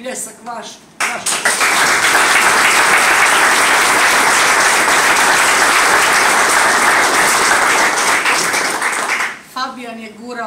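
People applaud loudly.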